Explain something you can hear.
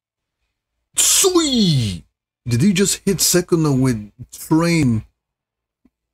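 A man exclaims with animation, close to a microphone.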